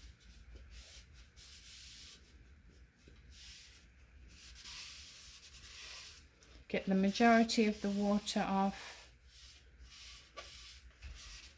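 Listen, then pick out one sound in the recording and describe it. A damp cloth rubs softly against a wooden bowl.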